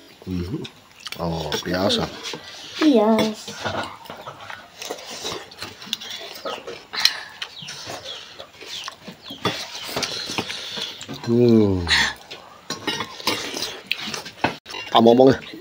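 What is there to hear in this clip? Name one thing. A metal spoon clinks against a metal bowl.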